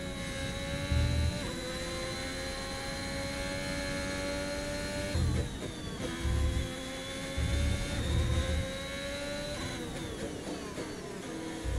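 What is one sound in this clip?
A racing car engine whines at high revs, shifting gears and dropping in pitch.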